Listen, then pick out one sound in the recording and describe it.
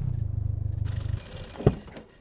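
A car engine idles with a low rumble.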